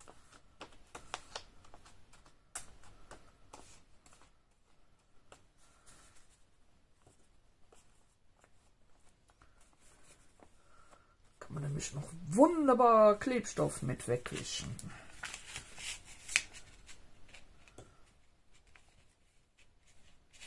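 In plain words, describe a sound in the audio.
A brush dabs and scrapes softly on paper.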